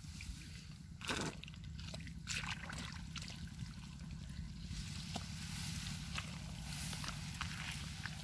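Hands squelch and splash in wet mud.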